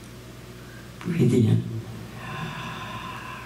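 An elderly woman speaks calmly through a microphone.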